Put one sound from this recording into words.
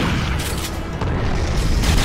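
Gunfire and an explosion boom from a game.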